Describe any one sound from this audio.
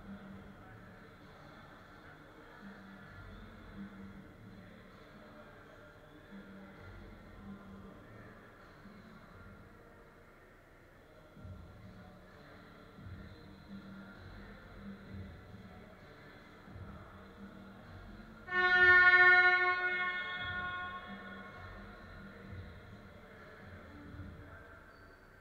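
Distant voices murmur and echo in a large hall.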